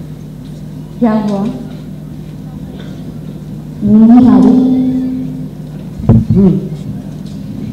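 A young woman speaks through a microphone over loudspeakers in a large hall, with short pauses between phrases.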